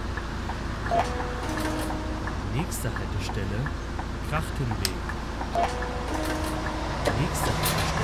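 A ticket machine beeps in short electronic tones.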